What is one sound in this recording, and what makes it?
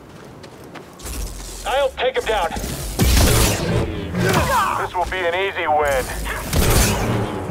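A lightsaber hums and clashes loudly in a fight.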